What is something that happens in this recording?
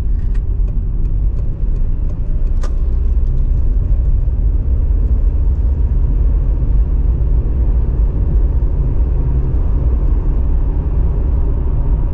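A car's engine and tyres rumble low and steady on the road while driving.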